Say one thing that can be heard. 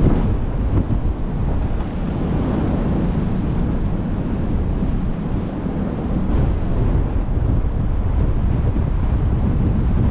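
Waves wash against a moving ship's hull.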